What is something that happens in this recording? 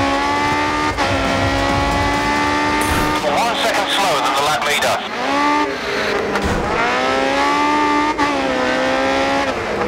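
A racing car engine screams at high revs, shifting gears up and down.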